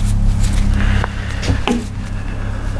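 A wooden block is set down on a metal table with a light knock.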